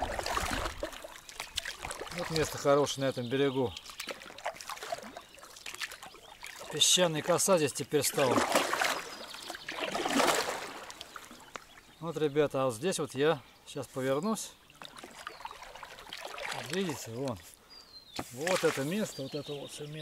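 A paddle splashes and drips in water.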